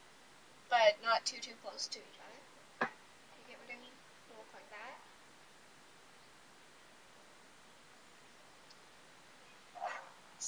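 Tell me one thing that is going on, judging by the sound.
A girl talks casually close by.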